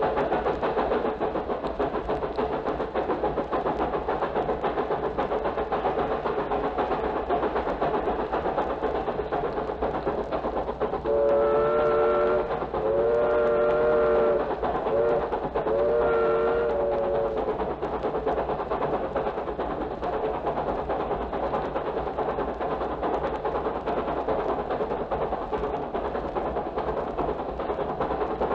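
A recording plays from a vinyl record.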